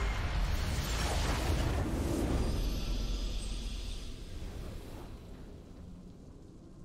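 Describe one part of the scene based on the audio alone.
A game victory fanfare swells and fades.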